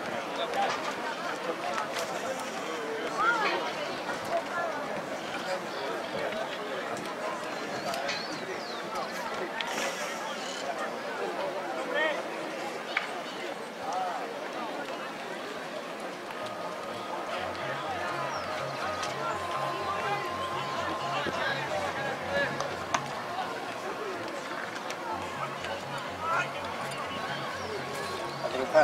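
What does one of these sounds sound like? A crowd of spectators chatters in the distance.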